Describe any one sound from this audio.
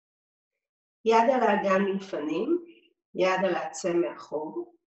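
A woman speaks calmly and clearly into a nearby microphone, as if instructing.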